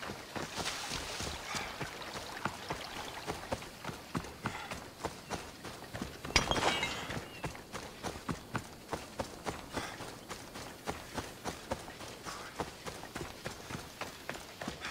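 Footsteps rustle steadily through dry grass.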